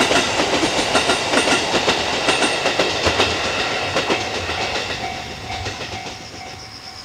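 A train rumbles along the tracks with wheels clattering over rail joints.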